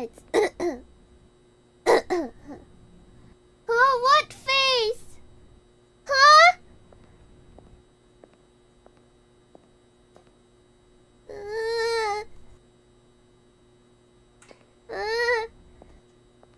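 A young woman speaks in a high, playful voice into a close microphone, in short bursts.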